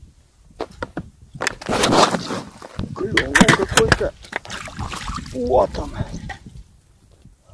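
Fishing line rustles as a man pulls it in by hand.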